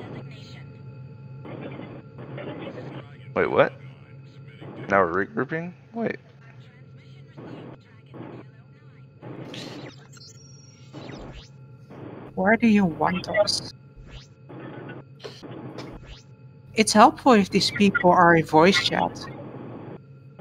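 A spaceship's engines hum steadily.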